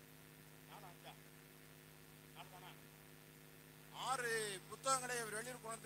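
An elderly man speaks slowly through a microphone and loudspeakers, with pauses.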